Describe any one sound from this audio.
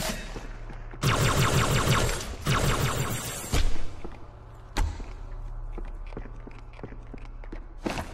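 A rifle fires bursts of rapid shots.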